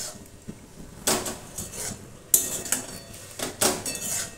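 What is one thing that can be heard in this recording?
A metal spatula scrapes and stirs food in a metal pan.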